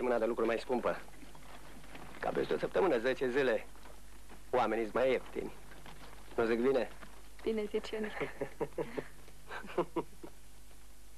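A man and a woman talk quietly and closely.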